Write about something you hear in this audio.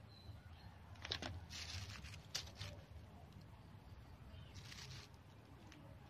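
Leafy stems rustle as they are handled.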